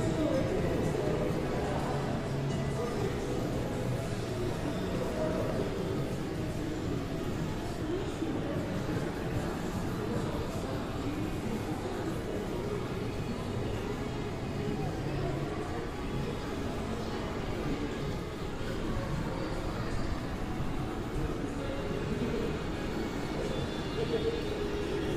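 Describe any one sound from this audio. Footsteps of passers-by echo on a hard floor in a covered walkway.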